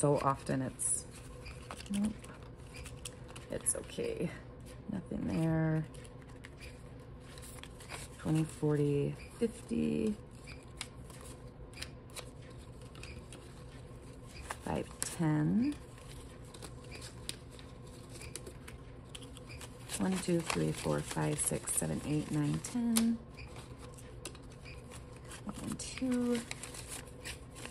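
Paper bills rustle and crinkle as they are handled and counted.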